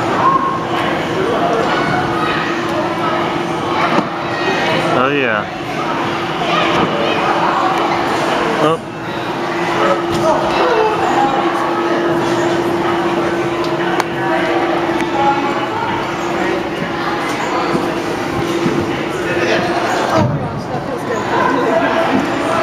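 Many children chatter and shout in a large echoing hall.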